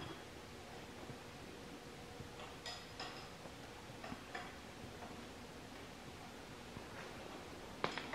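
Metal tools clink and tap against an engine.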